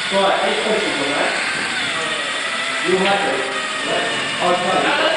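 An electric drill whirs steadily as it bores into metal.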